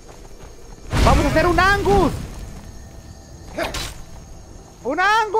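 A young man exclaims loudly into a headset microphone.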